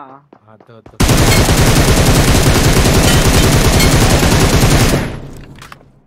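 Rapid gunfire rattles in a long burst.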